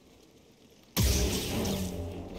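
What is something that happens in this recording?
A lightsaber ignites with a loud humming buzz.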